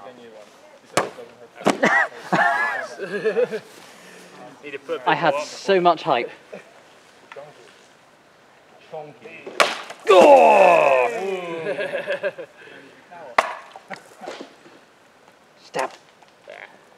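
A sword slashes through a plastic jug with a sharp crack.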